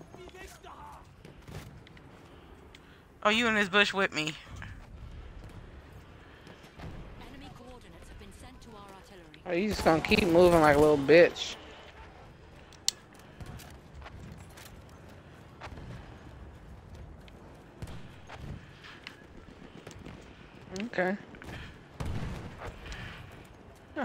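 Rifle shots crack close by.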